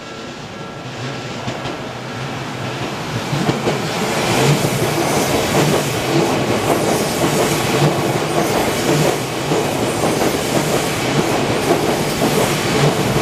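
Another train approaches and roars past close by, growing loud.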